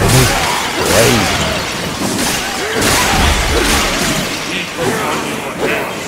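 Metal blades clash and ring.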